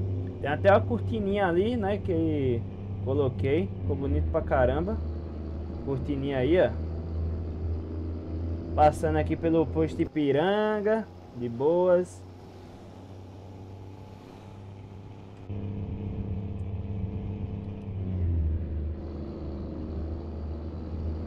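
A truck engine hums steadily and low.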